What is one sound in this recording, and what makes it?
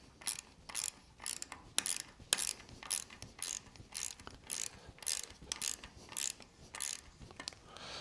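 A small metal nut clicks and scrapes as fingers tighten it.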